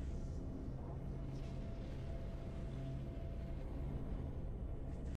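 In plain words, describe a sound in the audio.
Triumphant game music plays a steady, swelling chord.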